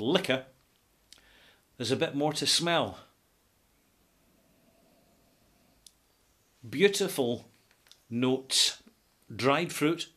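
A middle-aged man talks calmly and close to a microphone, pausing now and then.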